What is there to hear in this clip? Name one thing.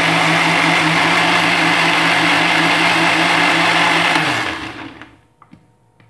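A blender whirs loudly, then winds down.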